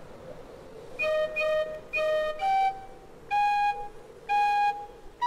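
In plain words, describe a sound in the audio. A boy blows short, shrill notes on a whistle.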